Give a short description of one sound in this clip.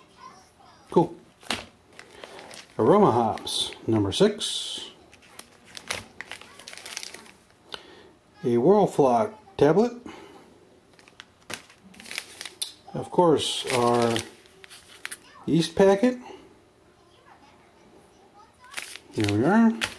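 Foil and plastic packets crinkle and rustle in a hand.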